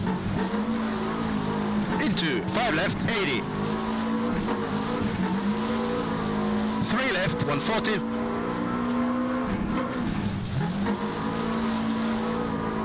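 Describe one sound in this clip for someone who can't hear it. A rally car engine drones steadily, its pitch rising and dipping with the revs.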